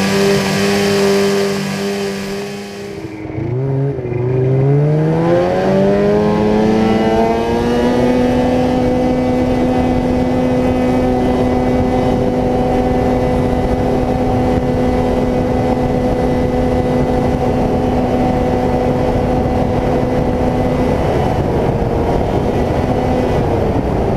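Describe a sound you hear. A snowmobile engine drones close by, rising in pitch as it speeds up and then holding steady.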